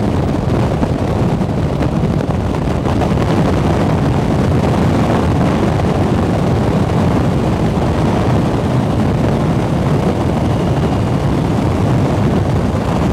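Wind roars loudly and steadily against a microphone at speed.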